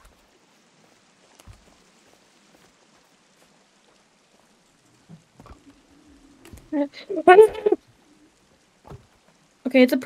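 A heavy wooden log thuds down onto other logs.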